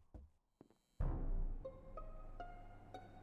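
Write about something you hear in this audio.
A video game alarm blares.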